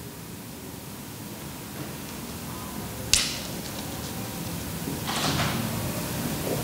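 A man speaks calmly nearby in a quiet echoing room.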